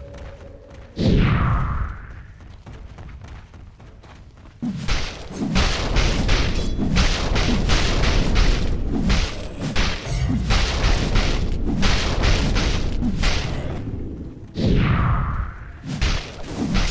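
A magic spell whooshes down with a falling swoosh.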